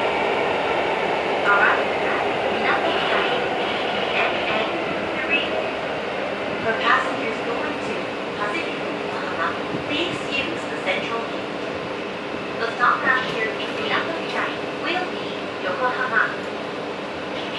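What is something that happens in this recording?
A crowd of passengers chatters on a platform as a train passes.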